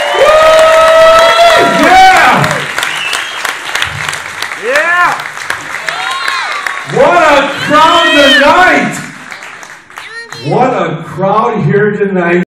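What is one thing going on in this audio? A man sings and yodels loudly through a microphone in a large echoing hall.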